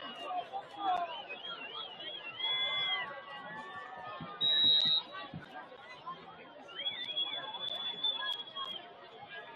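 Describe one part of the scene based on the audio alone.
A crowd of players and spectators shouts and cheers outdoors.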